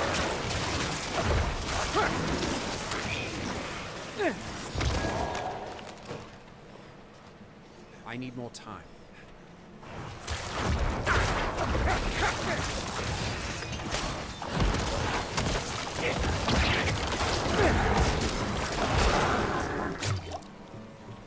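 Game combat sounds clash and crackle with bursts of fiery blasts.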